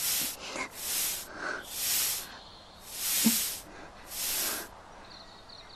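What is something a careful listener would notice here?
Air hisses in short bursts from a bicycle pump.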